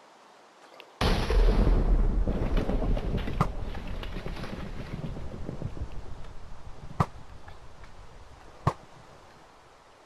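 Thunder cracks loudly and rumbles away slowly.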